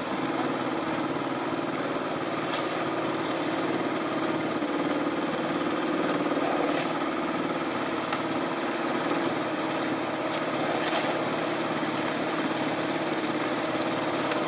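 Shallow water laps and splashes close by.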